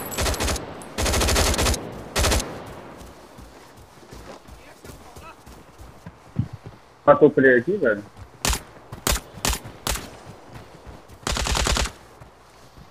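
A rifle fires rapid bursts of shots up close.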